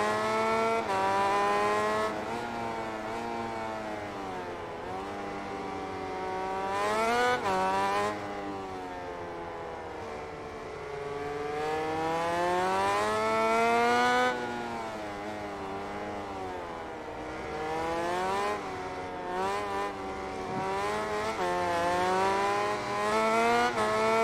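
A motorcycle engine screams at high revs, rising and falling in pitch.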